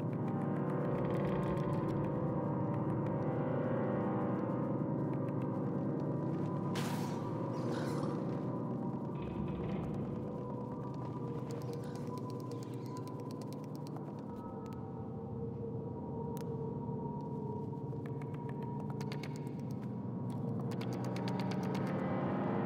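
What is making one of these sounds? Small footsteps patter softly on a wooden floor.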